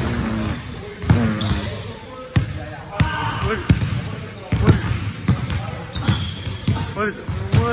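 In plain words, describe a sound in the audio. A basketball bounces repeatedly on a hard wooden floor in a large echoing gym.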